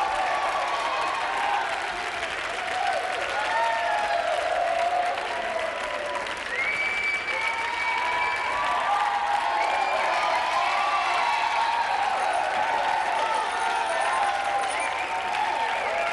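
A crowd claps along in rhythm.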